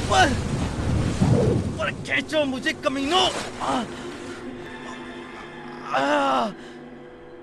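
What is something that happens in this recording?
A man shouts with strain.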